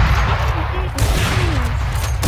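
A rifle shot cracks sharply.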